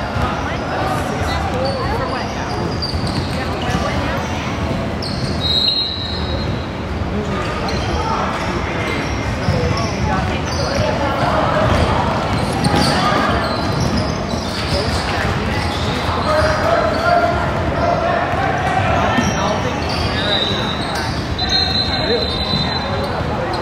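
Young players shout and call out to each other in a large echoing gym.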